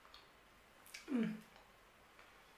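A young woman makes a short hum.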